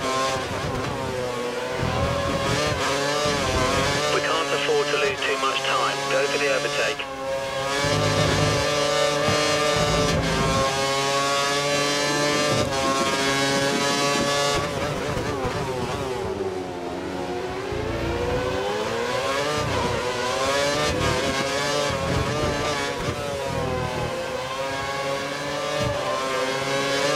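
A Formula One V8 engine screams at high revs, rising and dropping as it shifts through the gears.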